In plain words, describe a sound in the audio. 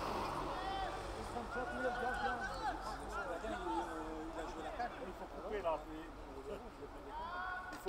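Spectators talk nearby.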